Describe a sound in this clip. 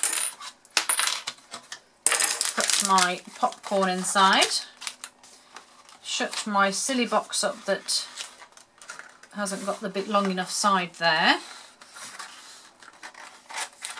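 A cardboard box rubs and taps as hands slide it open and shut.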